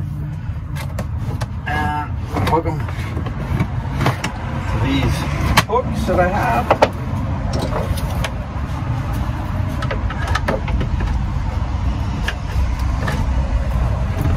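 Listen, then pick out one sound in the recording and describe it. Small metal parts click and rattle as a man works by hand.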